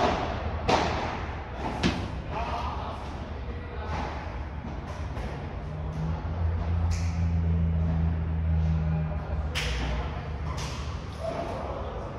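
Padel rackets strike a ball with sharp pops in an echoing indoor hall.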